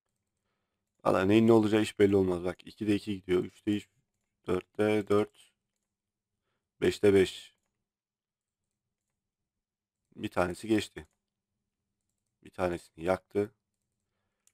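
A man talks calmly and closely into a microphone, in short bursts.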